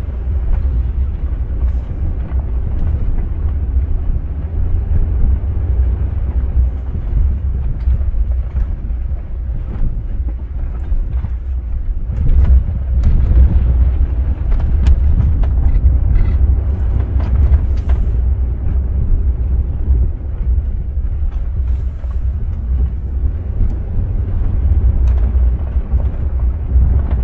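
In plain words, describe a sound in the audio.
Loose stones knock against the underside of a vehicle.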